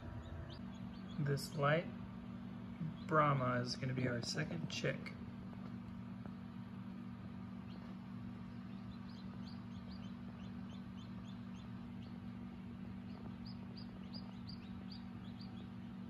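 An incubator fan hums steadily.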